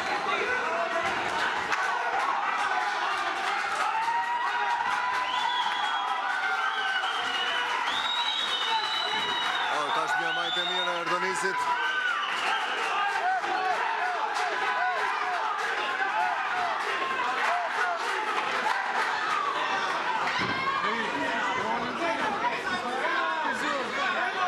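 Boxing gloves thud against a body in quick punches.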